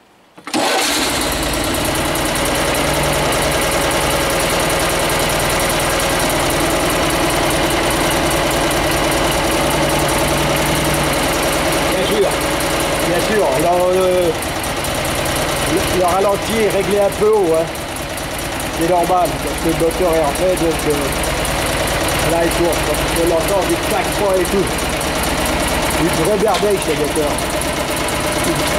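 An engine idles steadily close by, with a loud rattling hum.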